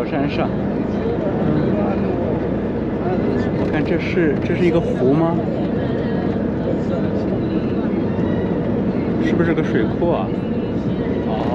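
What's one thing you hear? A car drives steadily along a road, its tyres humming on the wet surface.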